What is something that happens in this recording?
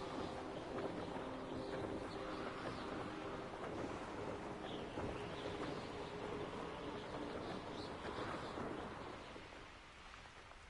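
Wind rushes steadily past during a fast flight.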